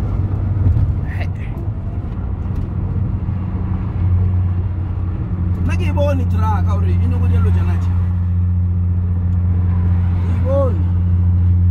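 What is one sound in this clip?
Tyres roar on a highway.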